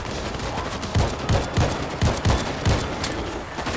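A rifle fires in quick bursts of shots.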